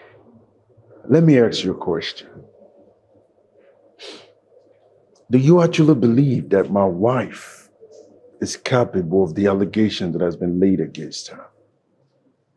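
A second man speaks with animation, close by.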